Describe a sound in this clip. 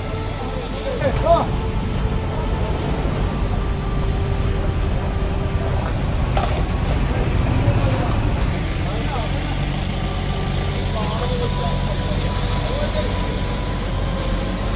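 A diesel mini excavator engine runs.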